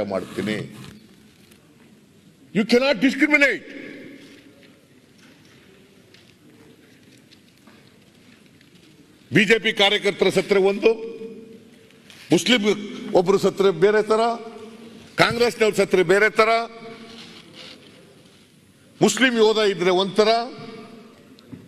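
An elderly man speaks loudly through a microphone in short bursts.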